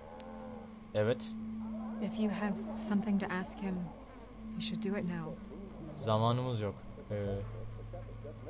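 A woman speaks quietly and sadly.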